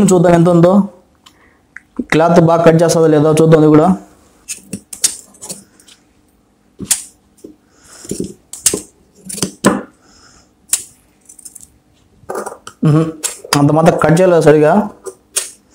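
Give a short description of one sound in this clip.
Scissors snip through cloth.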